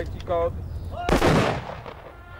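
Rifles fire a volley together.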